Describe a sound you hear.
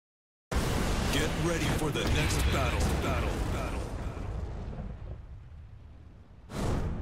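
A fiery explosion roars and slowly dies away.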